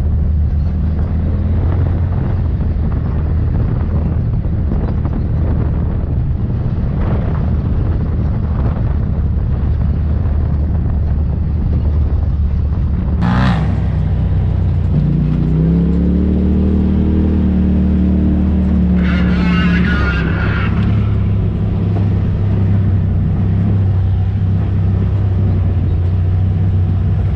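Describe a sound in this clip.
An off-road vehicle's engine rumbles steadily at close range.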